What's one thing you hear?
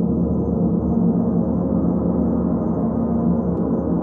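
Singing bowls ring with a sustained tone.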